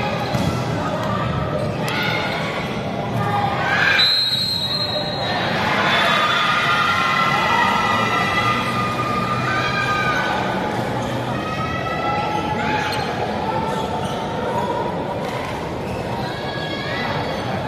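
Many young voices chatter and call out in a large echoing hall.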